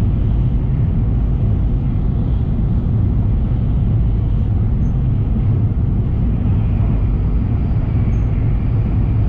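A fast train rumbles steadily along the tracks.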